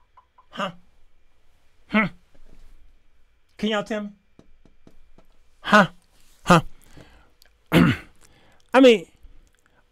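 A man speaks expressively into a close microphone in short bursts.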